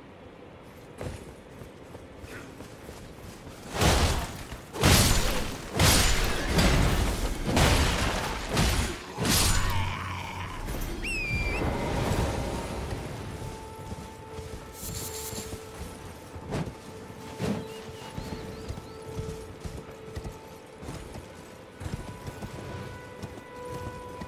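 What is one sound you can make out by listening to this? Footsteps run over grass and stone.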